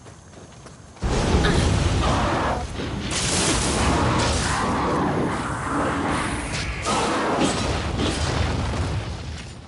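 Blades clash and strike hard in a fierce fight.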